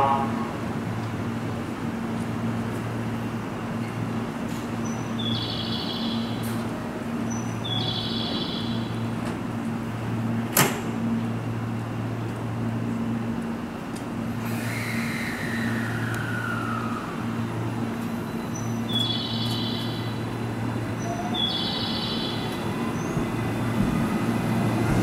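A train's engine hums steadily while idling.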